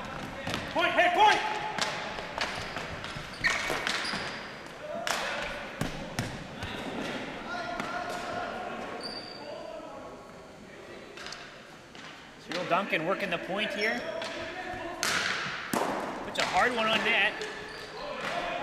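Hockey sticks clack and scrape on a hard floor in a large echoing hall.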